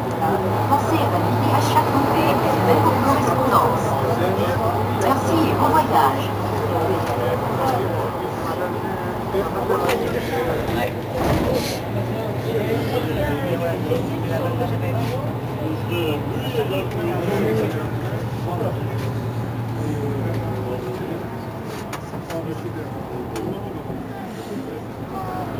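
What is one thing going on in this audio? A bus engine idles close by with a low steady hum.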